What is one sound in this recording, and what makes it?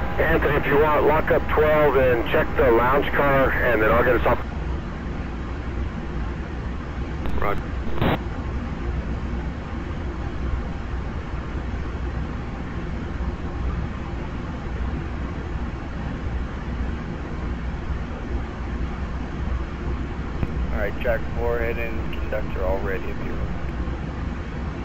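A parked passenger train hums steadily at idle.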